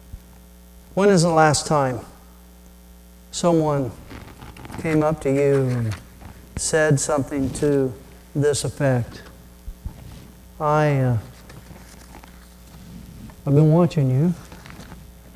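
A middle-aged man speaks slowly and deliberately through a microphone in a large room, with pauses between phrases.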